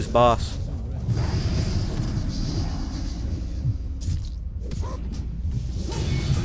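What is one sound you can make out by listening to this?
Fire spells crackle and roar.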